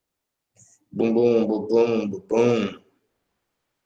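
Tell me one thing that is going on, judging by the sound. A young man speaks briefly and calmly, close to the microphone.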